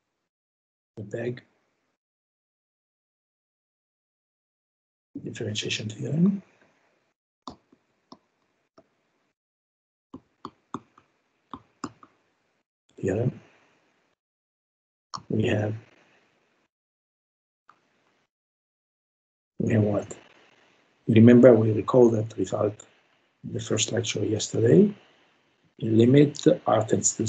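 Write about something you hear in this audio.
A man speaks calmly through a microphone, heard over an online call, with pauses.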